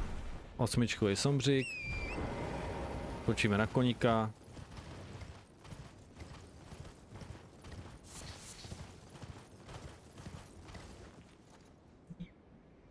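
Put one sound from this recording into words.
Hooves thud as a horse gallops over the ground.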